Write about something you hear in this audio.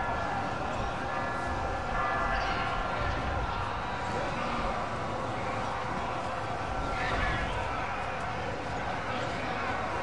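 A battle rages with a steady din of clashing soldiers.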